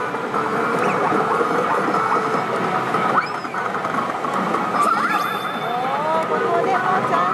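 A slot machine plays loud electronic jingles and sound effects.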